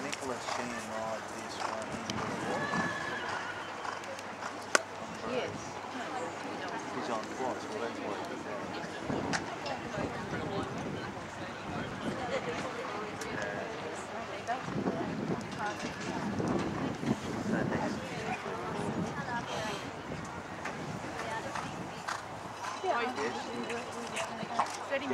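Spectators chatter in the distance.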